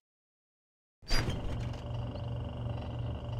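A refrigerator door opens.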